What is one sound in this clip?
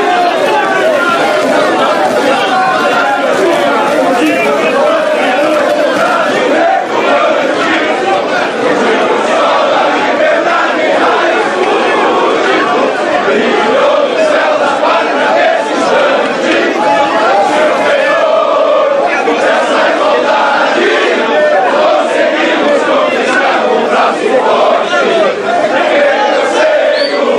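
A large crowd of men shouts and chants loudly in an echoing hall.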